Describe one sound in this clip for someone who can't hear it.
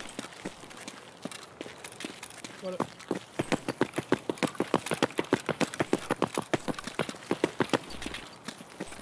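Footsteps crunch quickly on a hard road.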